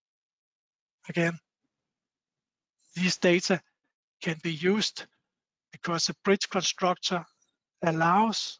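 A man speaks calmly through a microphone, in short phrases with pauses.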